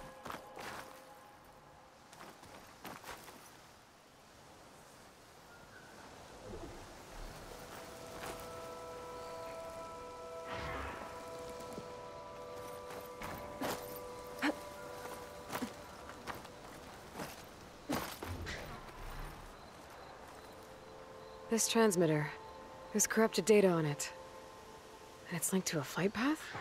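Hands and feet scrape and knock against rock while climbing.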